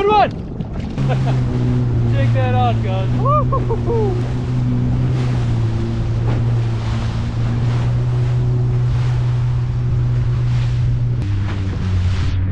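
Water splashes against a moving hull.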